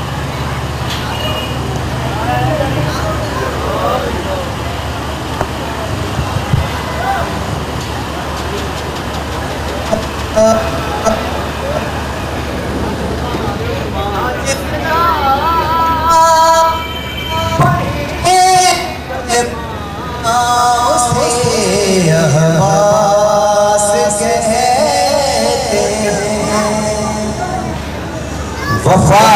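A young man sings with feeling into a microphone, heard through loudspeakers.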